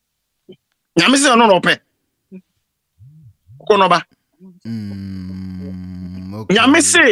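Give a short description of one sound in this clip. A man preaches loudly and with animation through a microphone.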